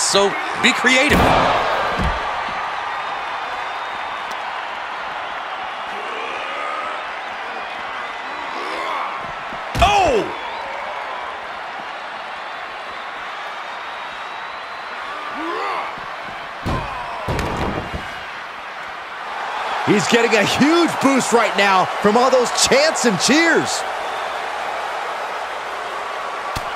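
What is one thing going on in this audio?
A crowd cheers loudly throughout.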